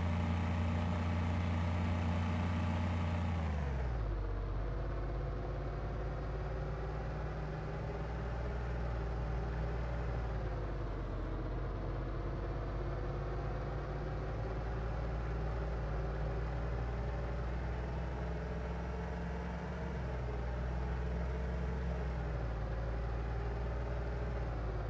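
Tyres rumble over a road.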